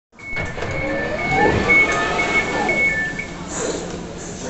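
Door warning beeps sound in quick, steady pulses.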